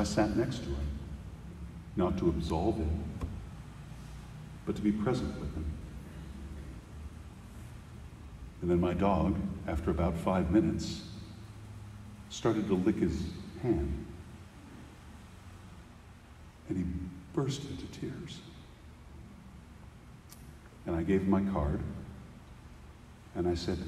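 A middle-aged man speaks calmly and deliberately into a microphone, with pauses, in a large echoing hall.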